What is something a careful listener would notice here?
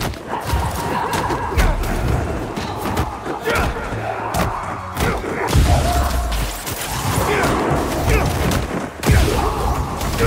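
Punches and blows land with heavy thuds and crashes.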